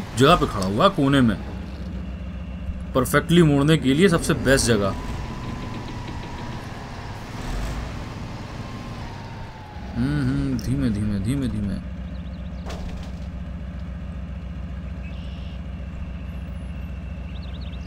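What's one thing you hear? A heavy truck engine rumbles steadily at low revs.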